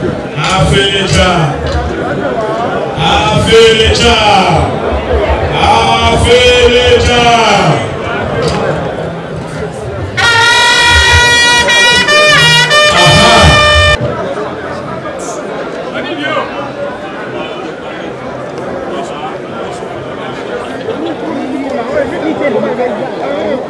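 A crowd murmurs in the open air.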